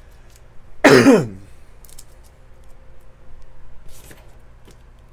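Trading cards rustle and slide against each other in the hands.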